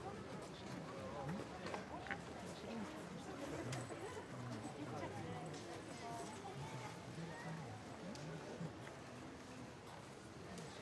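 A crowd of men and women murmurs and chatters quietly nearby.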